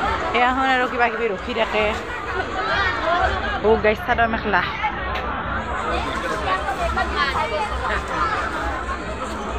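A crowd of women and men chatters nearby.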